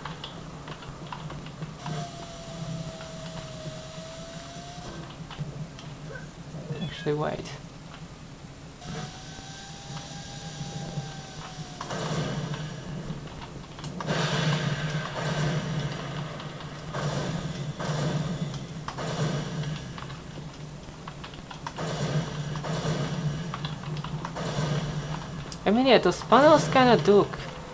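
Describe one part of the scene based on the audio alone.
Keyboard keys click softly under quick fingers.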